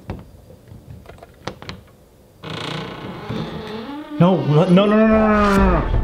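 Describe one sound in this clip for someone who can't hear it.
A door handle clicks as it is pressed down.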